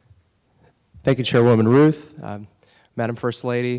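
A man speaks with animation through a microphone in a large hall.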